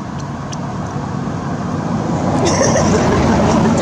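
A monkey chews and munches food.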